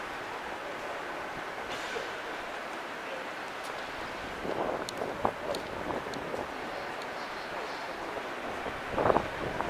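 A crowd murmurs softly across a large echoing hall.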